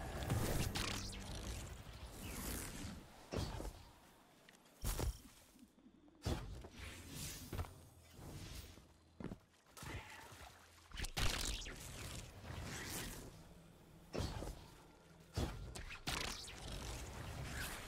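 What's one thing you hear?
A glowing blade swooshes in bursts.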